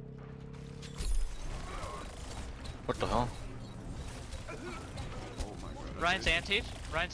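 Energy weapons fire with sharp, whooshing zaps.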